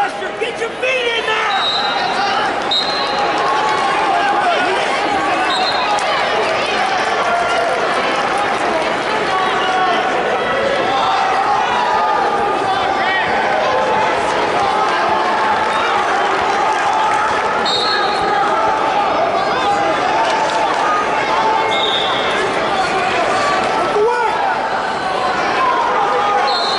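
A crowd of spectators chatters steadily in a large echoing hall.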